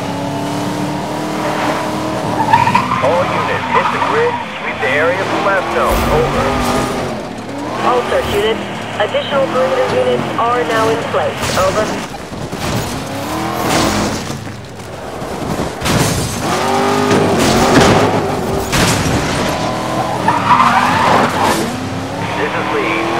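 A sports car engine roars and revs as the car speeds along.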